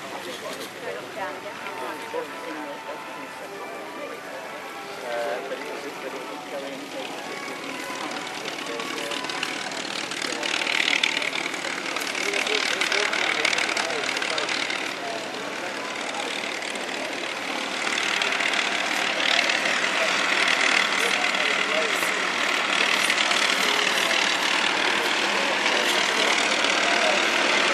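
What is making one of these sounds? Propeller engines of a large plane roar steadily and grow louder as the plane rolls past.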